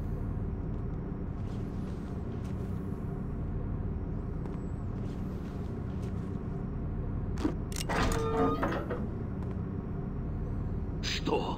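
Footsteps thud on a hollow metal floor.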